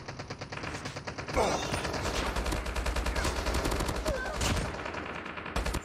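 Game gunfire rattles in quick bursts.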